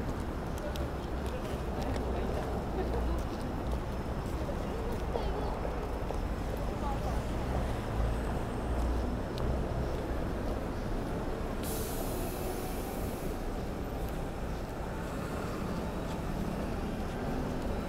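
Footsteps tap on wet pavement.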